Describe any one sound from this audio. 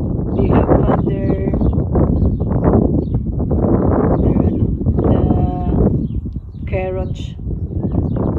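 Doves coo nearby in short calls.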